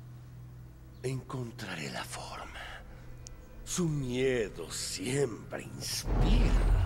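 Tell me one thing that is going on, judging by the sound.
A young man speaks slowly and menacingly, close by.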